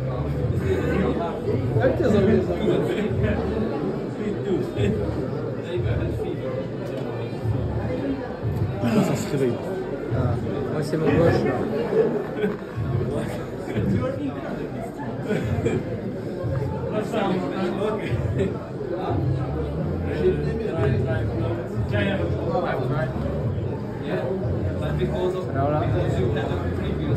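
Several men talk loudly and with animation close by.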